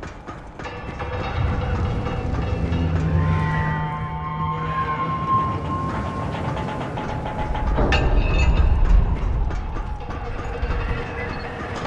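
Footsteps clang on a metal crane boom.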